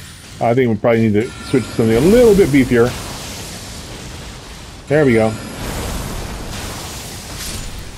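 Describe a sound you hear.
Magic spells whoosh and burst.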